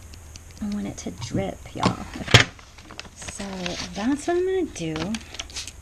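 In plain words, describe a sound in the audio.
Paper rustles as a sheet is folded over.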